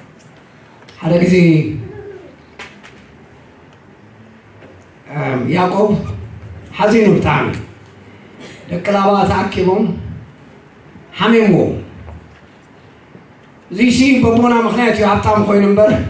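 An elderly man speaks through a microphone with pauses, in a large echoing hall.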